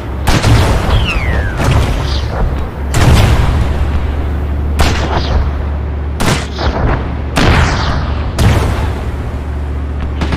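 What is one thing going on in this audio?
Loud explosions boom again and again, each followed by a rolling echo.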